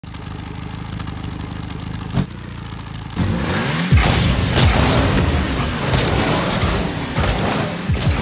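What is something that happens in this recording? A game car's engine hums steadily.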